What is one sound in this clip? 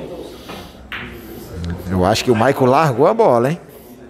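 Billiard balls click together on a pool table.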